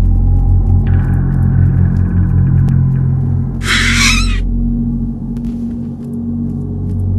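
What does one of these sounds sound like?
Footsteps walk across a hard tiled floor.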